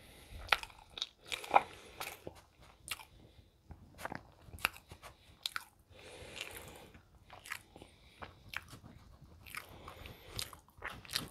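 Flaky pastry crackles and crunches close up as it is torn apart.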